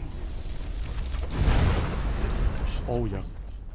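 A magic spell bursts with a loud roaring whoosh.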